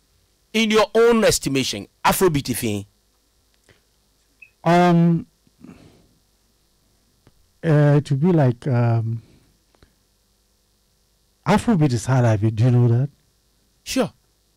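A man speaks close to a microphone, in short phrases with pauses.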